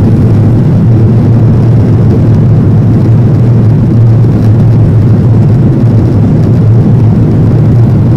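A jet engine drones steadily and loudly inside an airliner cabin.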